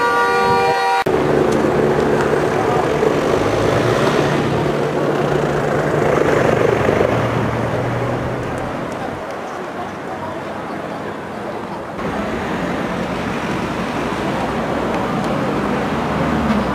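Flames roar and crackle as a car burns.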